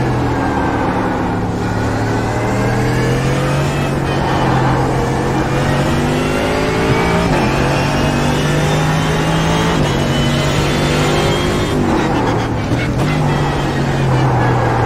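A racing car engine roars and revs up through the gears, dropping sharply when braking.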